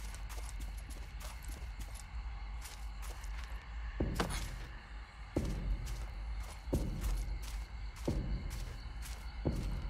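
Footsteps thud steadily on grassy, rocky ground.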